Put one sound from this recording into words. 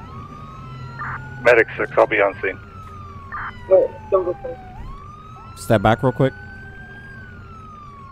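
A police siren wails steadily in the background.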